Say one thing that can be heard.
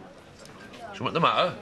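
A man speaks in a lively voice nearby.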